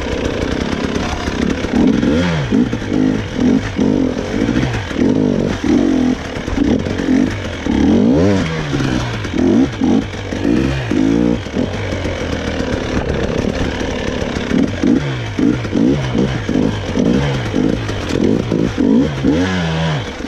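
A dirt bike engine revs up and down close by, rising and falling in quick bursts.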